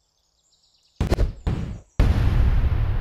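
Short game sound effects thump as pieces drop onto a board.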